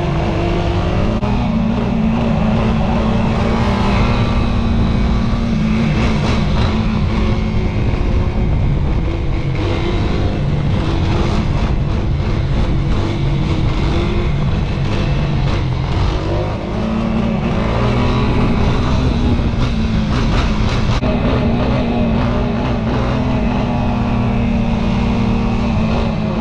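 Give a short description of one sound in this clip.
A quad bike engine roars loudly close by, revving up and down.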